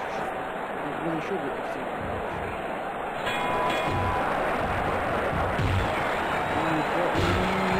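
A large crowd roars steadily in a big echoing arena.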